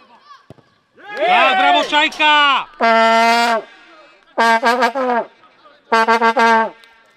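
Young men shout and cheer loudly nearby, outdoors.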